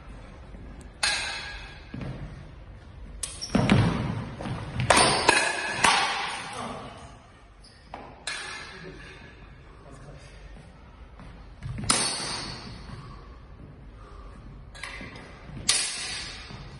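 Wooden swords clack sharply together in a large echoing hall.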